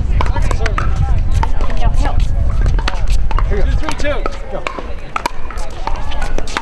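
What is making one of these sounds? Paddles strike a plastic ball with sharp, hollow pops again and again.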